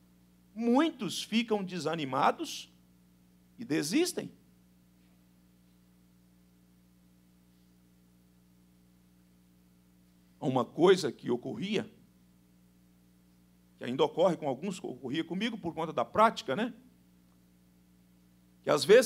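A man speaks into a microphone with measured pauses, his voice carried over a loudspeaker.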